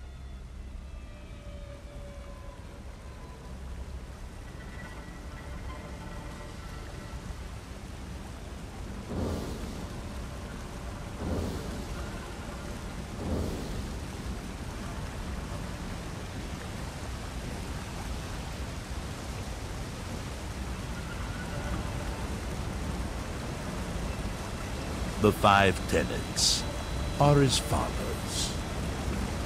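Water pours down steadily from falls nearby.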